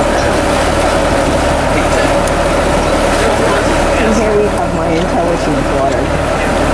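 A boat engine idles with a steady low hum.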